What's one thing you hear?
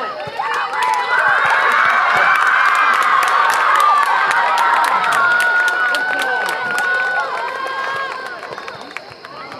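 A crowd of spectators cheers loudly.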